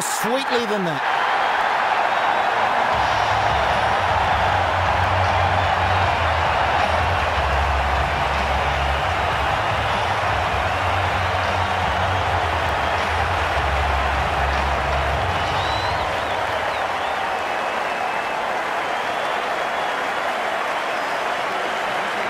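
A large crowd cheers and roars steadily.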